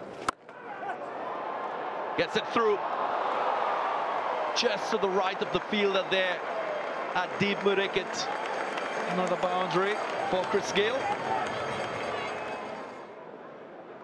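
A large crowd cheers and applauds outdoors.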